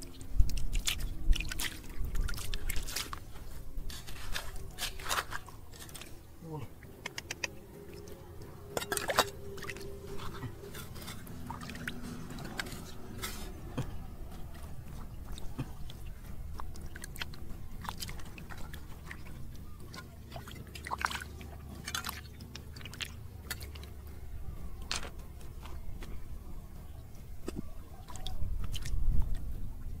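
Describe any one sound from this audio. Shallow water splashes and trickles around hands.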